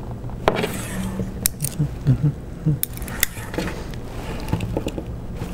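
Small plastic parts click and clatter against a table.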